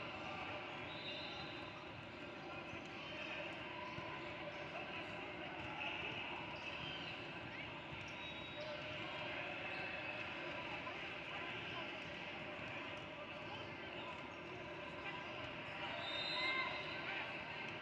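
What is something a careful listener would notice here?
Sneakers squeak on the hardwood court.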